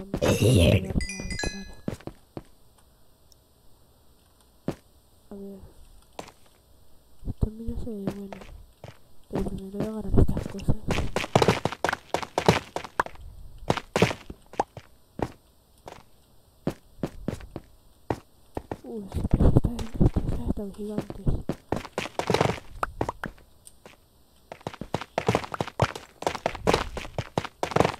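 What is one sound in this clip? Footsteps crunch on stone.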